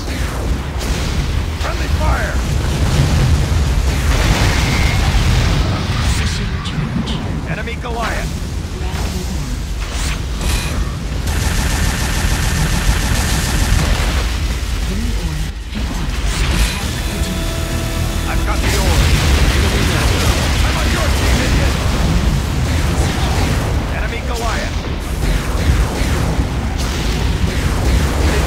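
Game weapons fire and blast in rapid bursts.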